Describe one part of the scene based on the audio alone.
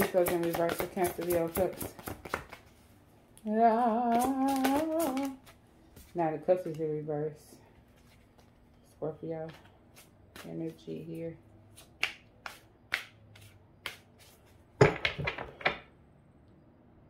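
Cards riffle and flap as they are shuffled.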